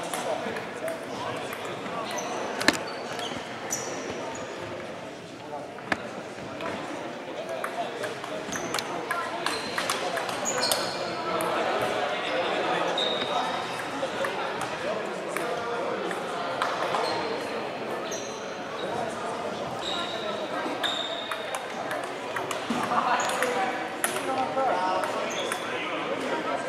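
A crowd of players murmurs and calls out in the background.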